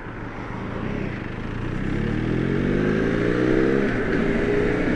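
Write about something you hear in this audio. A motorcycle engine revs up, rising in pitch.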